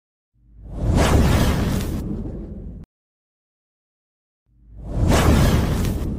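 A burst of flame roars and whooshes.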